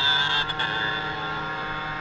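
A second motorcycle roars close by and pulls away.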